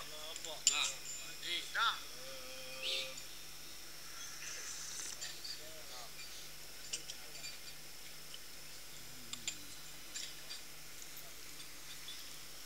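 A crowd of men murmurs and chatters in the background.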